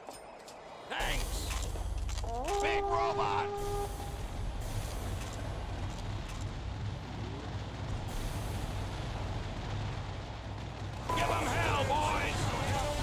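Gunfire and explosions boom.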